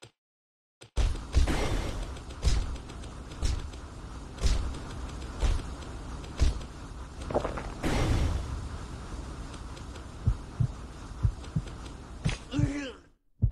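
Spell blasts and weapon hits crash and boom again and again.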